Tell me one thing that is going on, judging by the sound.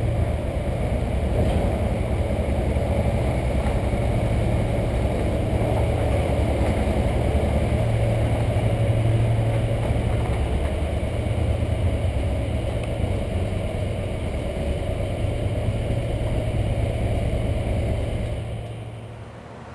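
A V-twin motorcycle engine runs at low speed inside an enclosed ferry car deck.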